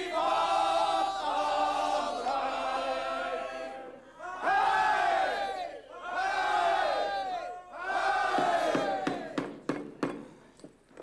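A crowd sings loudly together, close by.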